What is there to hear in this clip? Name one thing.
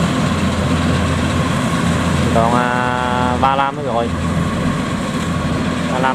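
A combine harvester engine rumbles steadily nearby, outdoors.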